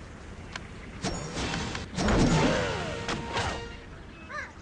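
A magical power-up whooshes and crackles.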